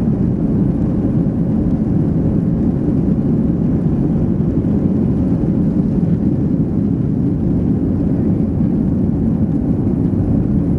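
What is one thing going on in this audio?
Jet engines roar loudly and steadily from close by.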